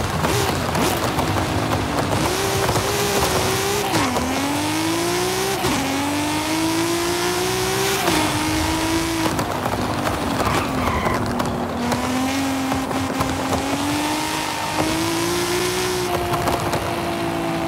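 A car engine revs hard, rising in pitch and dropping with each gear change.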